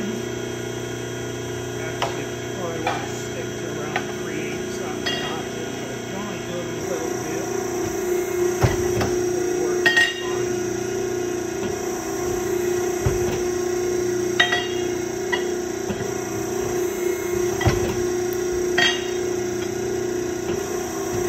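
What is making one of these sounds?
An ironworker machine hums steadily.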